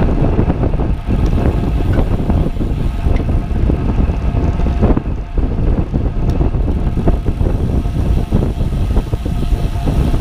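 Wind buffets loudly past the ear outdoors.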